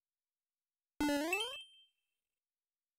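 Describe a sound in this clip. A short, bright video game jingle rises quickly and rings out.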